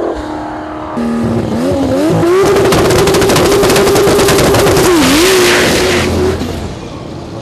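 A race car's engine revs hard and crackles up close.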